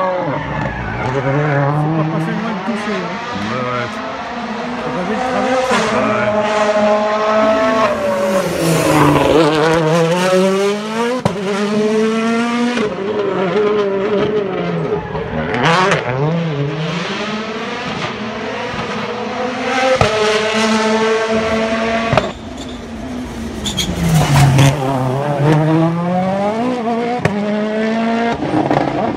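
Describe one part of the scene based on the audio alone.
A rally car engine roars and revs hard, rising and falling in pitch as the car changes gears.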